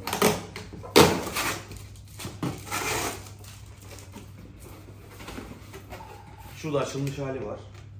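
Cardboard flaps rub and thump as a box is opened.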